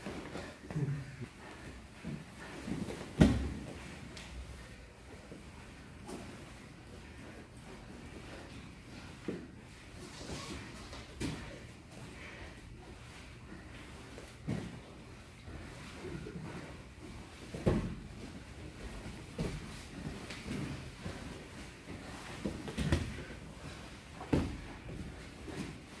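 Bare feet shuffle and squeak on a mat.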